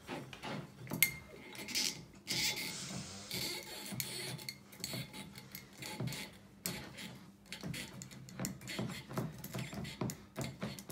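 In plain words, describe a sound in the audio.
A corkscrew squeaks as it twists into a wine bottle's cork.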